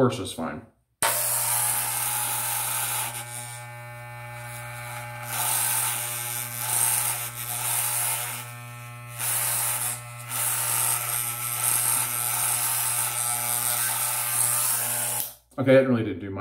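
Electric hair clippers buzz steadily, trimming a beard.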